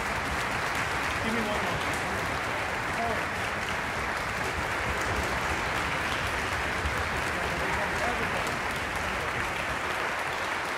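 A full orchestra plays loudly in a large echoing hall.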